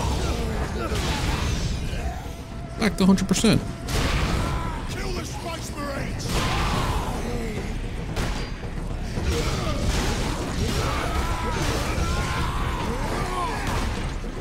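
Monsters snarl and roar.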